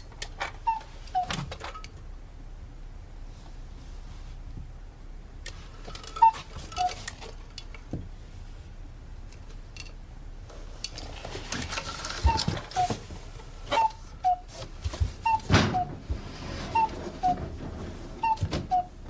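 A cuckoo clock calls with two falling notes, over and over.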